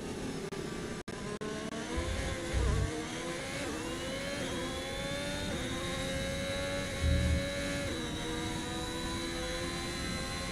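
A racing car engine whines loudly, rising in pitch as it speeds up.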